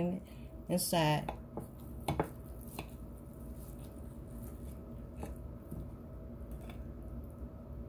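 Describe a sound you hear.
A knife taps and scrapes against a plate.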